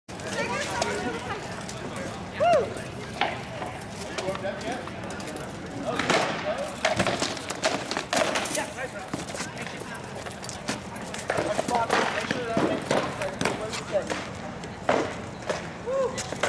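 Weapons clash on wooden shields as armoured fighters spar outdoors.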